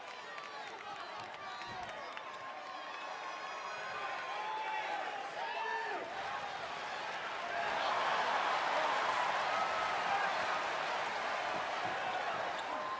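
A large crowd cheers in an echoing arena, swelling into a loud roar.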